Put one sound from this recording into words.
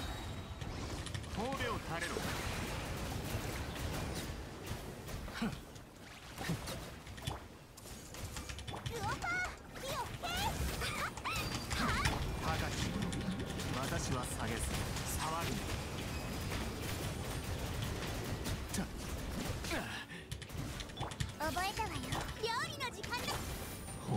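Game effects whoosh and crash in quick bursts.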